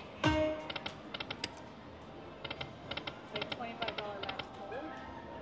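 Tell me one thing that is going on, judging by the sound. A slot machine's reels spin with quick electronic clicks and beeps.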